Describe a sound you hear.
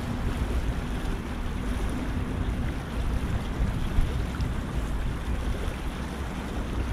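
Water rushes and splashes over rocks in a river.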